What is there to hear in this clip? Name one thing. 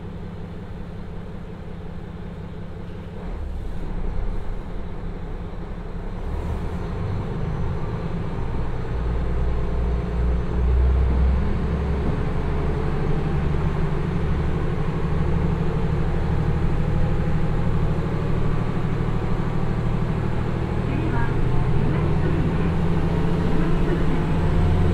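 A diesel railcar engine idles and then revs up as the train pulls away.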